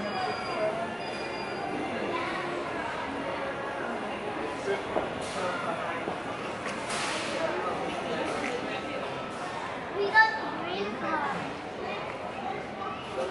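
A young woman talks close by.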